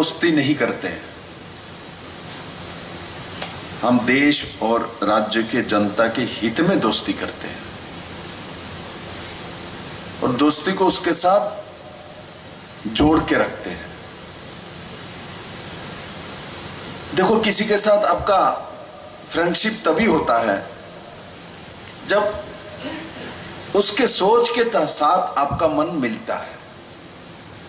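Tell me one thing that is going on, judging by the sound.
A man speaks with animation into a microphone over loudspeakers, pausing between phrases.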